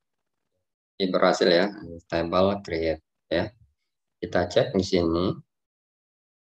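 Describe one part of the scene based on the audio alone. A young man speaks calmly into a close microphone, heard as if over an online call.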